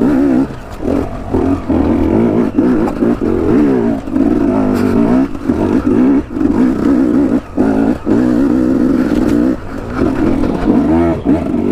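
Rocks and dirt crunch under knobby tyres.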